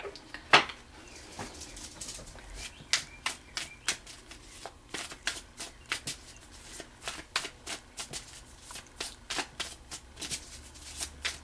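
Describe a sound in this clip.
Playing cards are shuffled by hand, with soft repeated taps and clicks.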